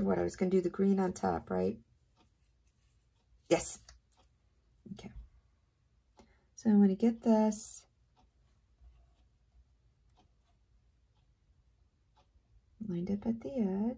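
Paper rustles softly as hands handle a strip of card.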